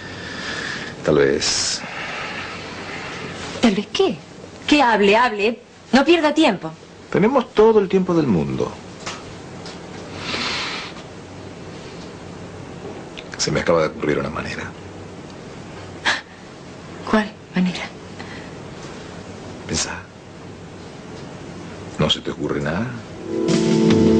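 A man speaks softly, close by.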